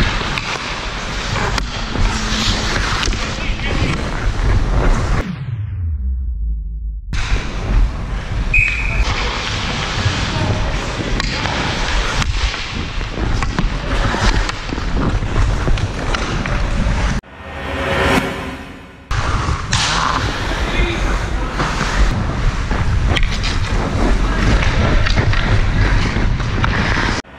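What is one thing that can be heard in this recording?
A hockey stick clacks against a puck.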